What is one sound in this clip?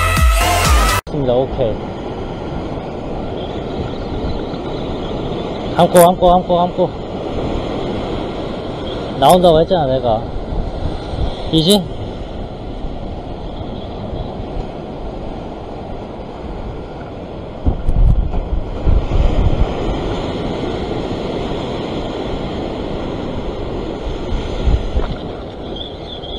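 Sea waves crash and surge against rocks.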